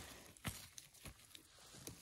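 A hand pulls a mushroom from grassy ground with a soft rustle.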